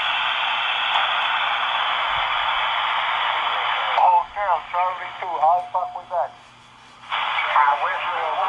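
A radio receiver hisses with loud static through its speaker.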